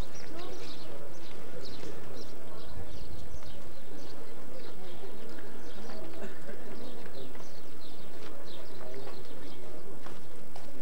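A crowd of men talk and murmur outdoors nearby.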